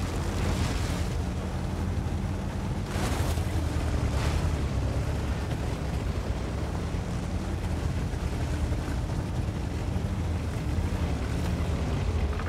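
A tank engine rumbles steadily as the tank drives over rough ground.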